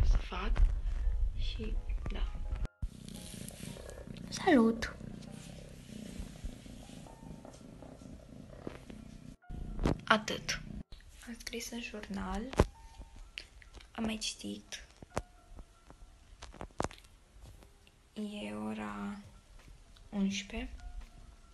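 A girl speaks with animation close to the microphone.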